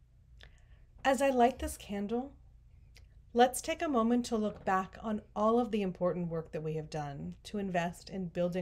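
An older woman speaks calmly and clearly.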